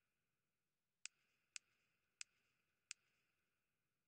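Soft menu clicks tick a few times.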